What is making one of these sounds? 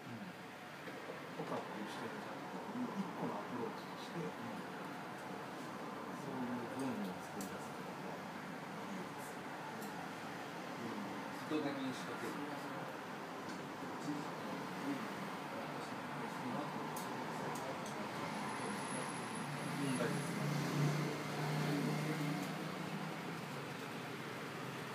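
Young men talk calmly nearby.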